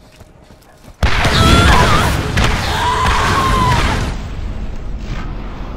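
An explosion booms and flames roar.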